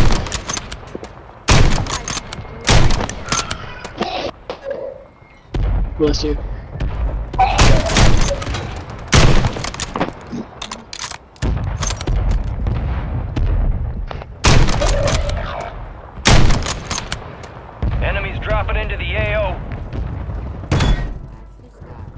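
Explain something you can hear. Gunshots crack loudly, one after another.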